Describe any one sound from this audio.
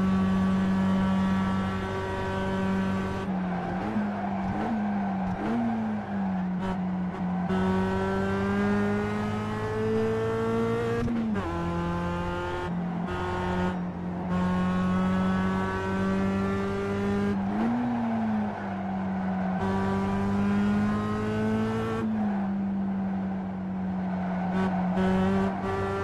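A racing car engine roars steadily, rising in pitch as it speeds up and dropping sharply at each gear change.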